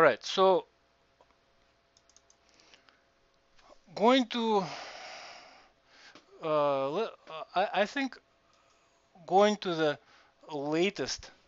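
A man speaks calmly into a headset microphone, in short phrases with pauses.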